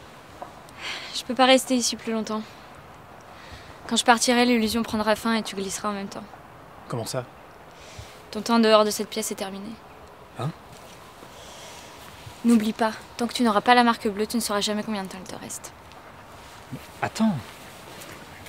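A young woman speaks quietly and calmly nearby.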